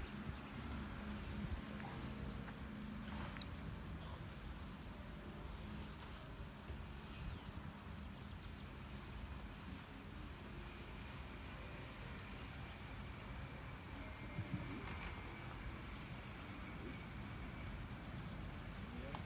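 Footsteps swish through grass outdoors.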